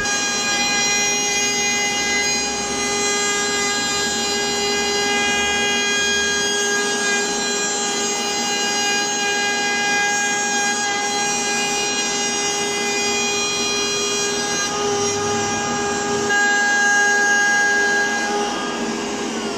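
A router whines at high speed as it cuts along the edge of wood.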